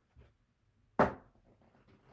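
Casino chips clack down onto a table.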